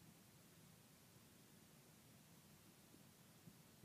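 A slab of clay is peeled off a board.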